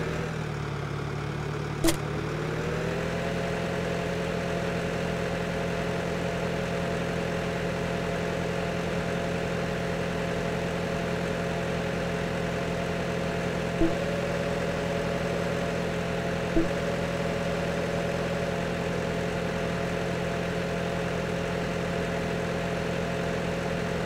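A tractor engine hums steadily and revs up as it speeds along.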